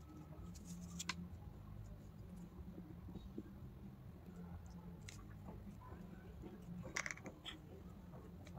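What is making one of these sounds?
Paper rustles softly as hands press and smooth it.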